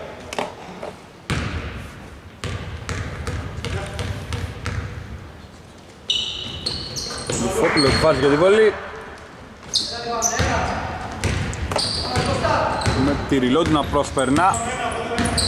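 A basketball bounces on a hardwood floor in a large echoing hall.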